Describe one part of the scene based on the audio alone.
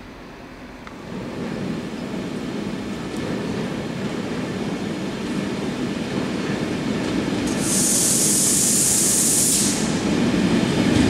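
A train rumbles closer, growing louder as it approaches.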